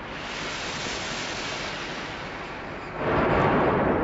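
Air bubbles gurgle and rush upward underwater.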